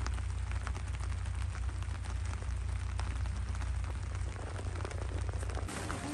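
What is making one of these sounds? A golf club strikes a ball with a short crack.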